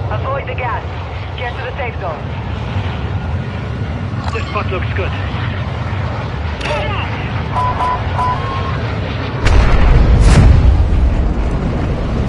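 A large propeller plane's engines drone steadily, growing louder near the end.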